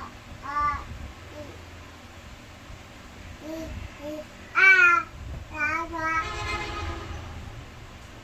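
An electronic toy plays short, bright, chirpy sounds when pressed.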